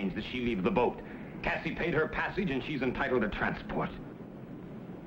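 An elderly man speaks in a low, serious voice.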